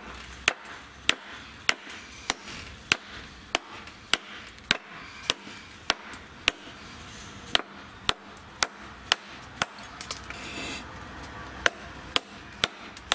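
A hatchet knocks sharply and steadily against a wooden branch.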